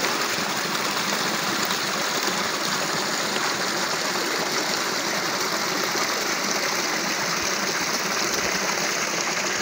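A small stream rushes and splashes over rocks close by.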